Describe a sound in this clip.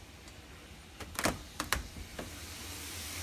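A metal doorknob rattles and clicks as it is turned.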